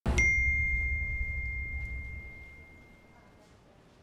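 A phone notification chime rings out and fades.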